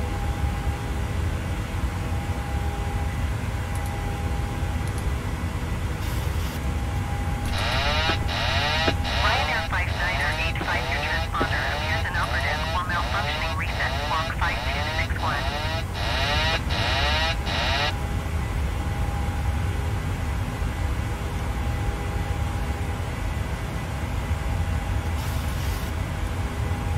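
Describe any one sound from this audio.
A steady low hum fills an aircraft cockpit.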